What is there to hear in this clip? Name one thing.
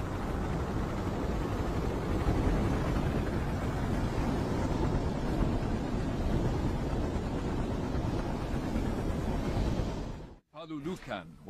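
Large rotor fans whir with a loud, steady roar.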